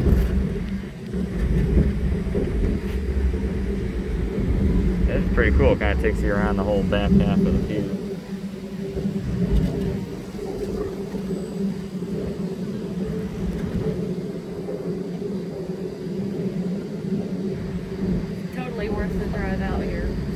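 A ride's machinery hums and rumbles steadily.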